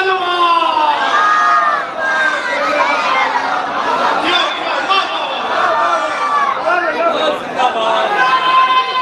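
A crowd cheers and calls out in a large gathering.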